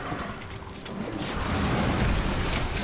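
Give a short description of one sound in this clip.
A large creature roars loudly with a rumbling rush.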